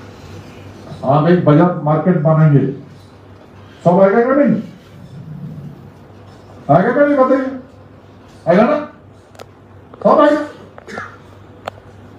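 A man speaks forcefully in short bursts through a microphone in an echoing hall.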